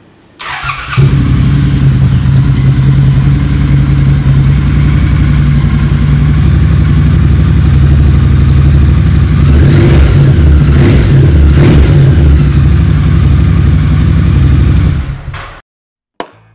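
A motorcycle engine idles with a loud, deep rumble.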